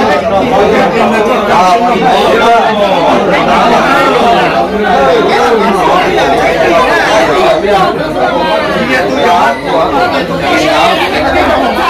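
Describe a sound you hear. A crowd of men and women talk and chatter over each other nearby.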